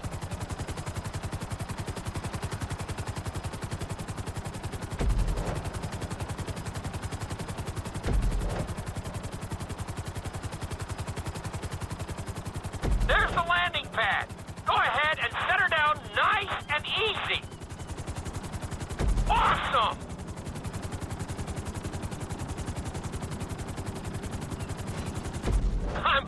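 Helicopter rotor blades thump steadily and fast.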